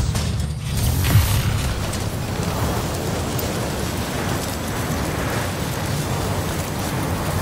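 An electric beam crackles and hums.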